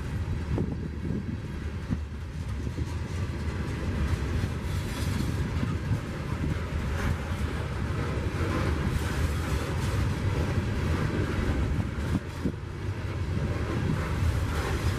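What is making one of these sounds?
Steel wheels clank and clatter over rail joints.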